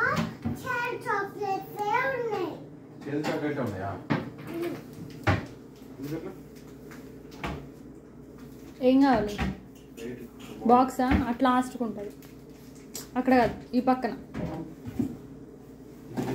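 Cupboard doors open and knock shut.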